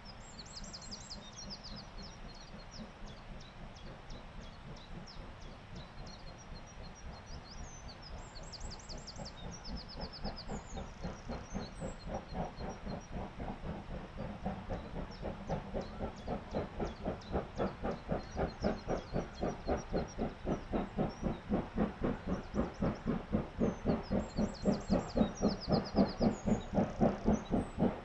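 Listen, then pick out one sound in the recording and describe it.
A steam locomotive chuffs steadily, growing louder as it labours closer.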